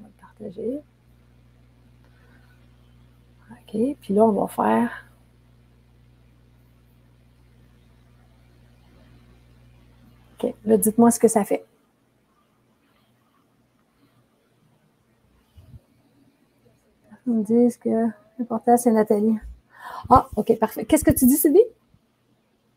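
A woman speaks with animation over an online call, in short bursts.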